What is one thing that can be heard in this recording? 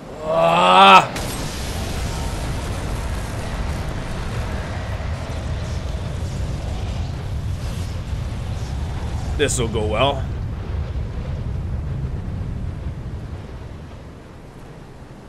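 Lightning crashes and a deep rumble rolls on, then slowly fades.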